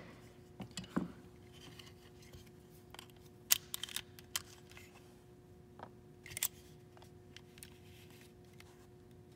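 Small metal parts click as they are handled.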